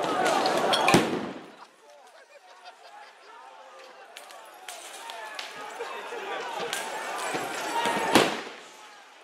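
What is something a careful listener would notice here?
Loud bangs go off in the street.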